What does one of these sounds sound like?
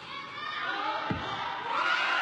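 A gymnast lands with a thud on a mat.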